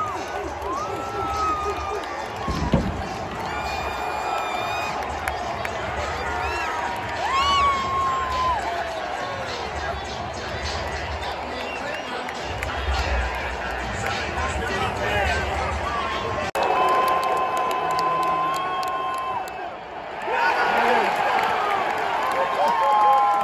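A large stadium crowd cheers and roars all around.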